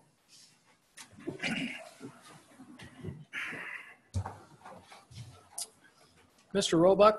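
Chairs creak and shuffle as several men sit down.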